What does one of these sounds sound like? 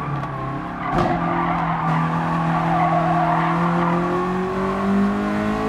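Tyres squeal as a racing car corners.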